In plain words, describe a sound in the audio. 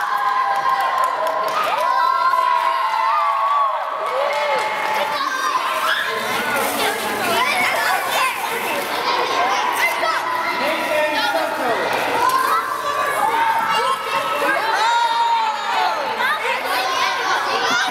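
Many children chatter and call out excitedly in a large echoing hall.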